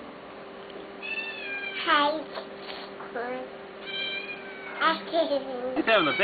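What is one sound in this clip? A baby babbles and squeals happily.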